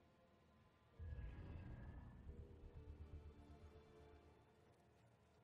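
A deep eerie whoosh swells up and slowly fades.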